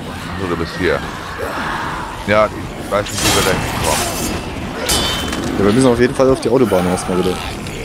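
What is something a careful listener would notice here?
Zombies groan and snarl nearby.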